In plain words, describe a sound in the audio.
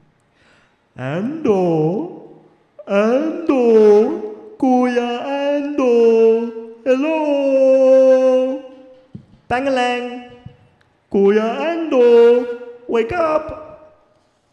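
A young man sings loudly and expressively into a microphone.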